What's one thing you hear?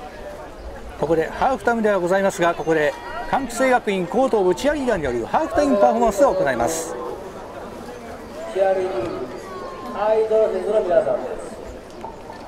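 A crowd of young people chants and cheers loudly outdoors.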